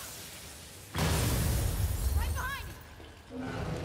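An ice creature bursts out with a loud roaring blast.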